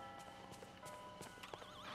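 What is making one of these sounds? Footsteps patter quickly on a path.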